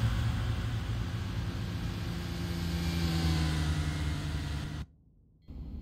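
An electric train's motors hum and whine with a rising pitch.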